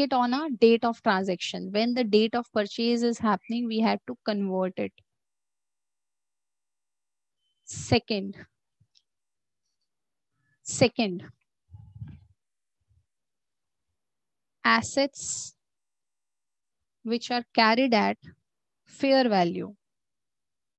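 A young woman speaks calmly through an online call microphone, in short phrases with pauses.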